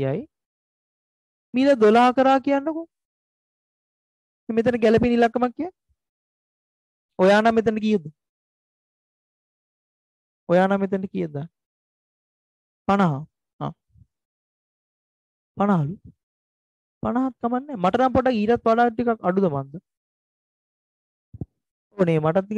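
A man speaks calmly and explains in bursts through a headset microphone.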